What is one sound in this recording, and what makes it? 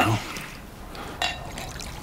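Liquid pours from a bottle into a glass.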